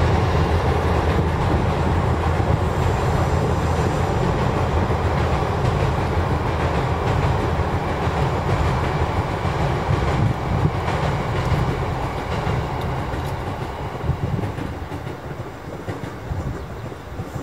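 A train rumbles across a bridge at a distance and fades away.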